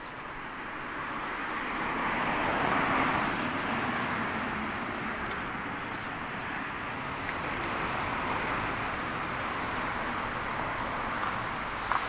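Cars drive past close by on the street, their tyres hissing as they go.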